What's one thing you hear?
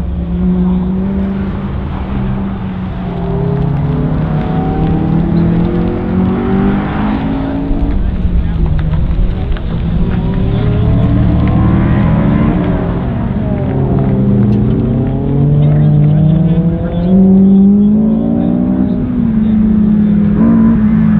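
A car engine revs hard, repeatedly rising and falling in pitch.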